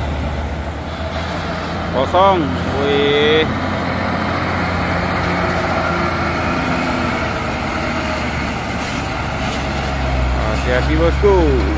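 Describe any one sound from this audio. A loaded truck's diesel engine rumbles as the truck drives slowly past.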